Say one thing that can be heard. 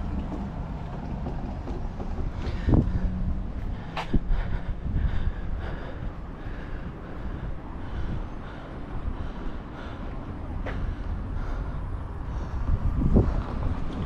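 Wind blusters outdoors, rumbling steadily with occasional gusts.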